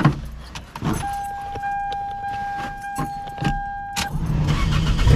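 A car's warning chime tones steadily.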